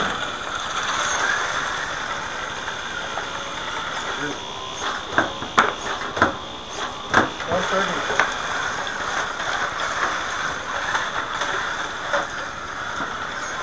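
A small robot's motors whir as it drives across the floor.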